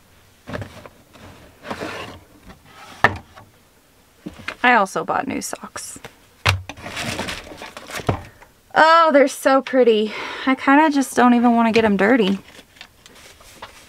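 Cardboard and paper rustle as a box is opened and handled.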